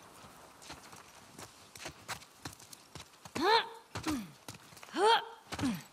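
Footsteps run quickly across wet pavement.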